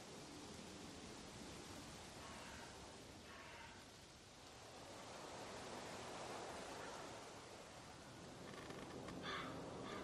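A man speaks quietly and anxiously.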